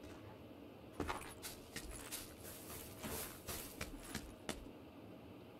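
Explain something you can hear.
Footsteps crunch through dry grass and gravel.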